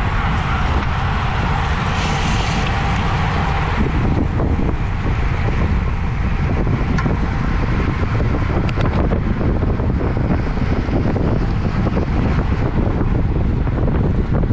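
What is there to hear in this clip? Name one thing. Wind rushes loudly past a bicycle rider.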